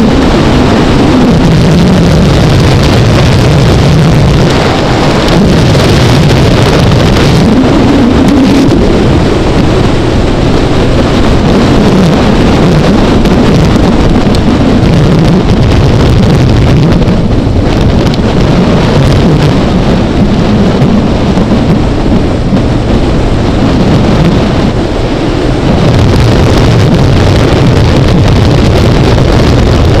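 A motorcycle engine hums steadily close by, rising and falling in pitch.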